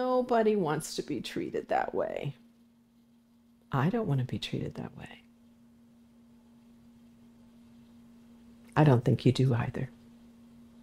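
An elderly woman speaks warmly and calmly, close to a microphone.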